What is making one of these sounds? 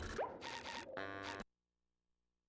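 Menu blips sound from a video game.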